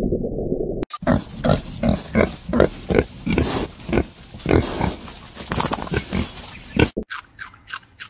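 Pigs grunt and snuffle while eating.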